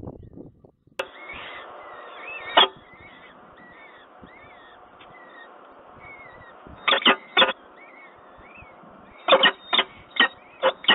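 A falcon chick cheeps softly close by.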